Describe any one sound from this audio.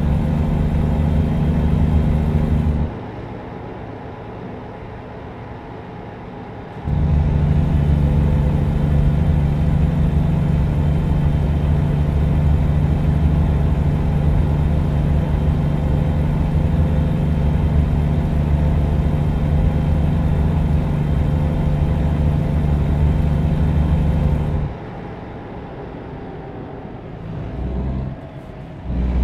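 A truck engine drones steadily, growing louder and quieter in turns.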